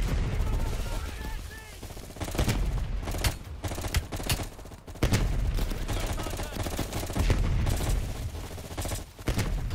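A rifle fires in rapid, loud bursts close by.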